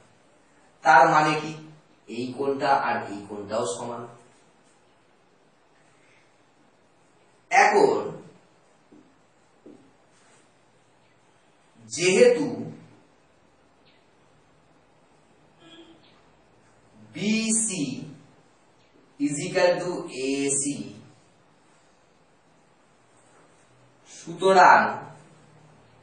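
A man speaks calmly in short bursts with pauses, close by.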